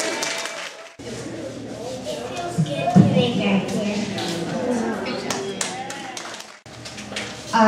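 A young boy speaks into a microphone.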